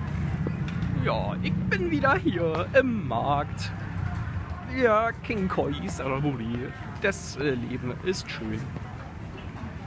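People chatter at a busy outdoor market.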